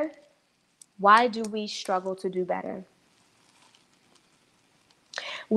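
A young woman speaks calmly and expressively close to a microphone.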